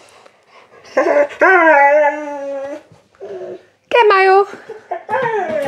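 A dog whines.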